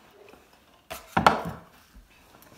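A metal tumbler thumps down on a table.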